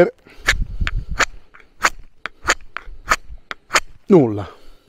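A knife blade clicks and scrapes in quick, short strokes.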